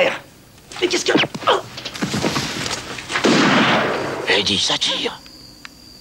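A woman screams loudly in terror.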